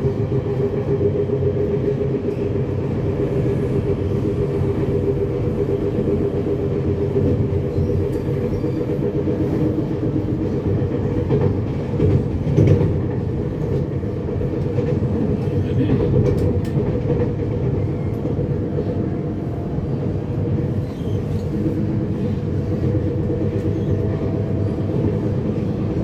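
Train wheels clatter and knock on the rails.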